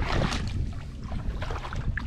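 Hands splash in shallow water and mud.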